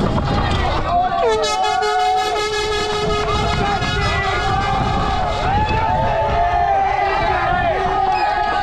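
A crowd of spectators cheers and shouts nearby.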